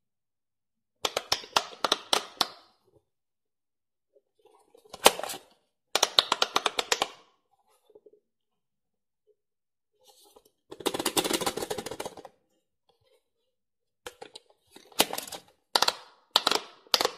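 A handheld electronic toy plays quick, bright beeping tunes in short bursts.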